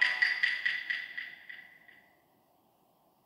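A video game jingle plays as a role is revealed.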